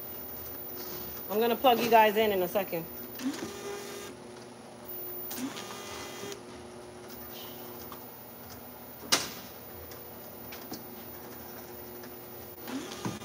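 A labelling machine hums and whirs steadily.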